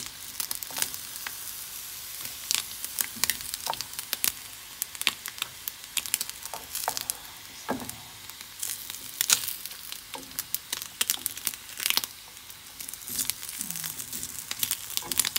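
Metal tongs click and scrape against a pan.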